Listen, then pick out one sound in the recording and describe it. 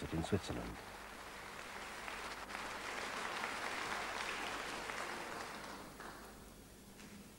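An audience applauds in a large hall, then fades.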